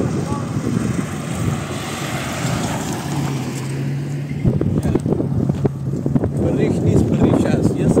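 A pickup truck drives along an asphalt road and passes close by.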